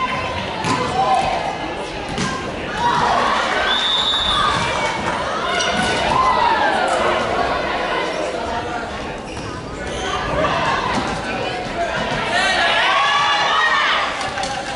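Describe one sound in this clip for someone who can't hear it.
Young women call out and shout to each other in a large echoing hall.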